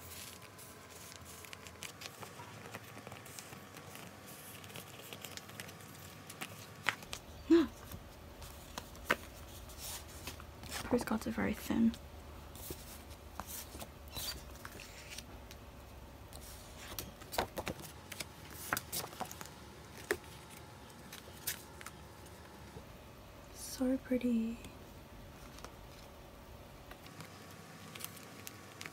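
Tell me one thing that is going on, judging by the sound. Plastic album sleeves crinkle and rustle as pages turn.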